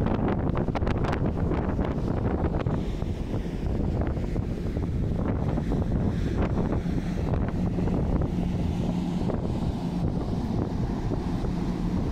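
Strong wind buffets outdoors with a low, steady rumble.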